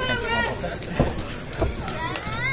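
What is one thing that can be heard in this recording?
A hand slaps hard against bare skin.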